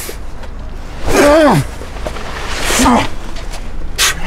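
A man shouts in anger.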